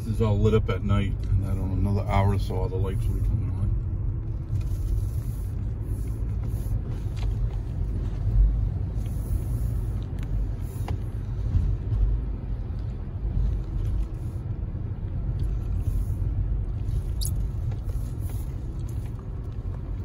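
A car drives along a road, heard from inside as a low, steady rumble.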